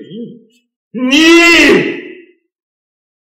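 An elderly man speaks loudly and with animation.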